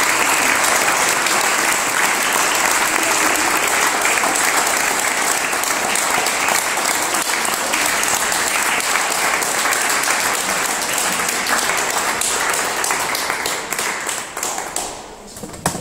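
A small audience claps and applauds steadily in a room, then the applause dies away.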